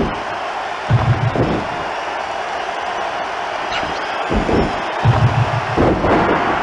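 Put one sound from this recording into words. Heavy bodies slam onto a wrestling mat with deep thuds.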